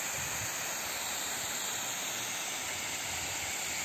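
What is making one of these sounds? Water rushes steadily over a spillway.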